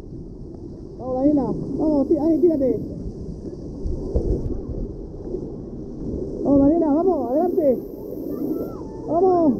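Young girls chatter and shout playfully close by.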